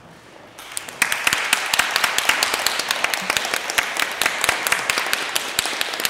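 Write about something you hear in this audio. Footsteps thud on a wooden stage in a large echoing hall.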